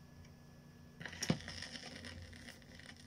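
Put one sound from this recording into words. Vinyl crackles and hisses under the stylus.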